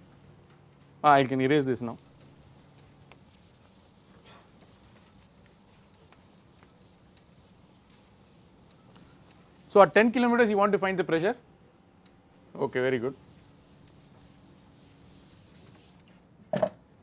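A board eraser rubs across a chalkboard.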